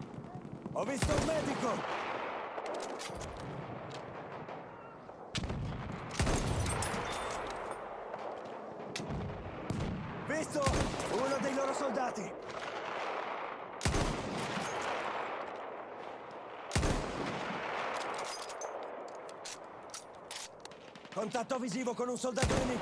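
A bolt-action rifle fires sharp, echoing shots.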